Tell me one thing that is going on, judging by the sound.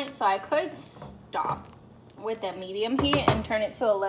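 A wooden spoon stirs thick soup in a metal pot.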